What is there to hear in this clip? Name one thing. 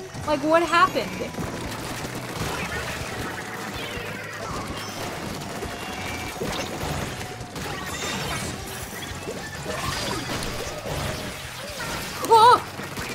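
Ink weapons splat and spray in quick bursts.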